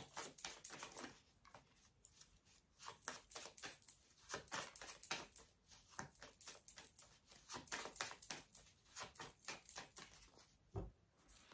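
Cards shuffle with quick soft riffling and slapping.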